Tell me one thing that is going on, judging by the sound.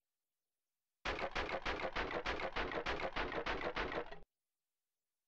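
A game tally ticks rapidly in quick, even beats.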